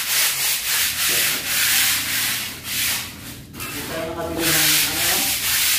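A hand tool scrapes rough plaster from a wall in harsh, repeated bursts.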